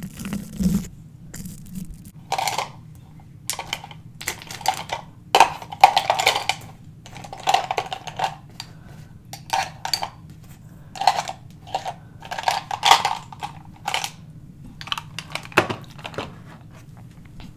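A young girl speaks softly, close to a microphone.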